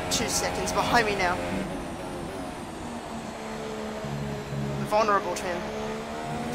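A racing car's gearbox snaps through quick downshifts with sharp crackles.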